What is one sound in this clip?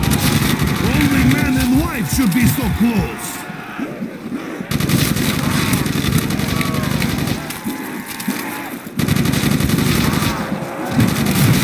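Zombies growl and moan.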